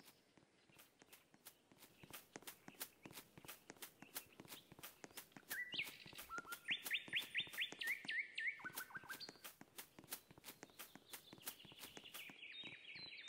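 Quick footsteps patter across grass.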